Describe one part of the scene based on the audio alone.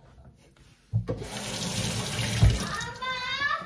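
Water runs from a kitchen tap into a steel sink.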